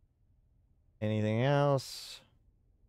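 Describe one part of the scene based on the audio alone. A man says a drawn-out word into a close microphone.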